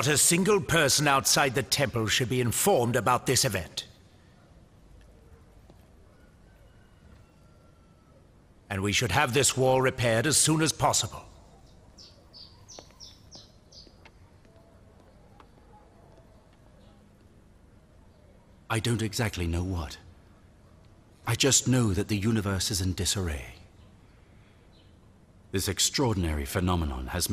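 An elderly man speaks slowly and solemnly, with pauses between phrases.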